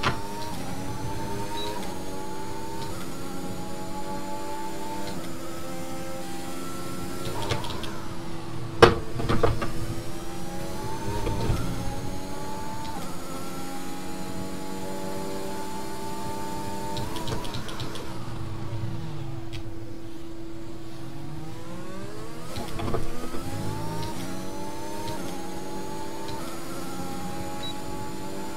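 Racing car engines whine at high revs, rising through the gears and dropping when braking.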